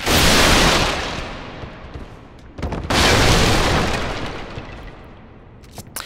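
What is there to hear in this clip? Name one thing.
A loud rushing whoosh swells and fades away.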